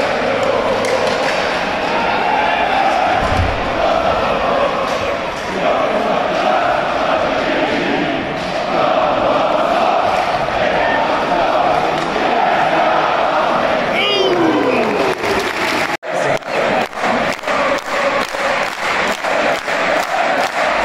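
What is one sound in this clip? A large crowd chants and cheers loudly in an echoing arena.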